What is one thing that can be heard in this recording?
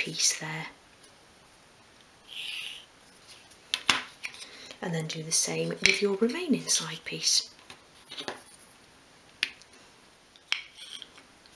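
A pencil scratches lightly on wood.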